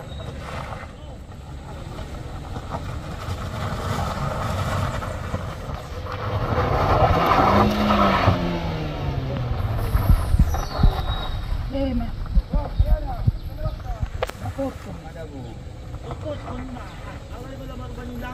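A car engine strains as the car crawls over a rough dirt road.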